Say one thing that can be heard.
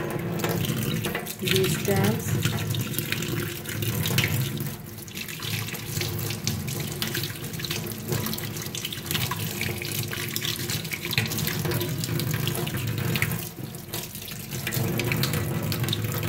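Water from a tap runs steadily and splashes into a metal sink.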